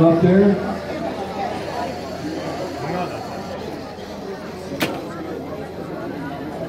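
Small robot motors whir as robots drive across a table.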